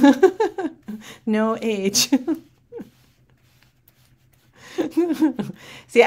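A woman laughs softly.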